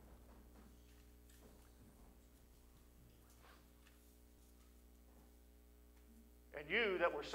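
A middle-aged man speaks through a microphone in a large echoing hall.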